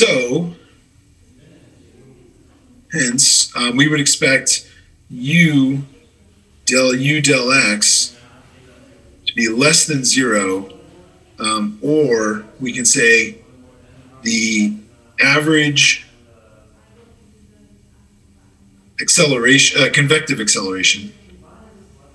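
A man speaks calmly into a microphone, explaining in pauses.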